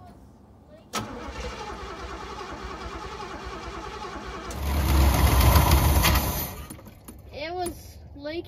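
A car engine idles with a steady rumble.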